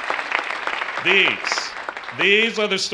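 A man in the audience cheers loudly.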